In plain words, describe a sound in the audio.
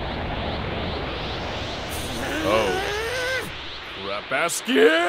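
An energy blast roars.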